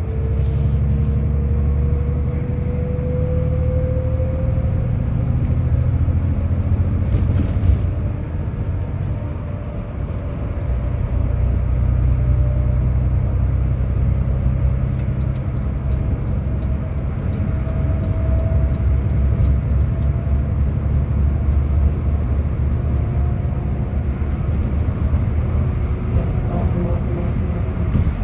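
Tyres roar on a highway.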